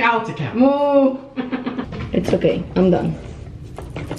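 A young woman talks playfully close by.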